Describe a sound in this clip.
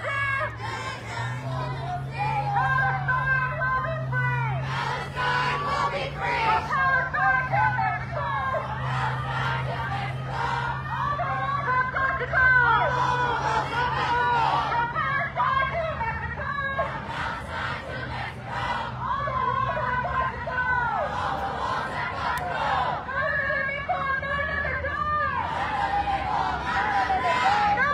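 A crowd of protesters chants loudly in unison outdoors.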